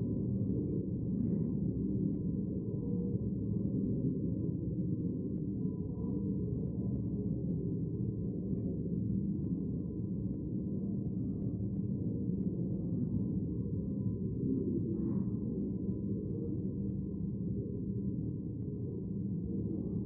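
Many people murmur and talk quietly in a large echoing hall.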